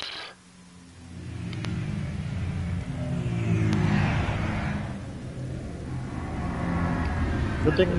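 Large aircraft engines roar and rumble overhead.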